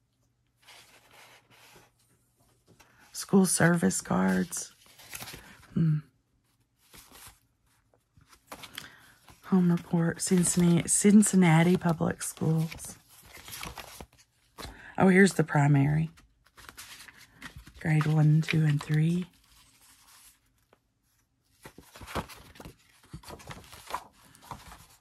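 Old papers rustle and crinkle as they are handled and leafed through.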